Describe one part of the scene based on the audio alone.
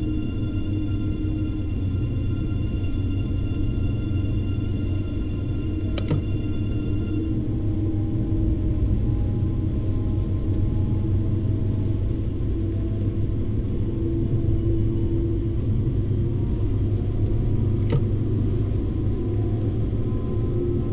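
An electric train rumbles and hums steadily while driving along.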